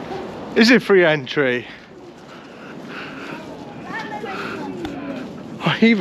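Footsteps shuffle on a paved path.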